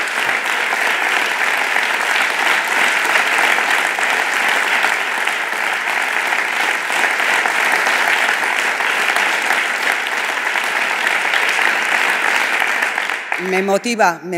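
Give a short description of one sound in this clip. A crowd applauds loudly and cheers.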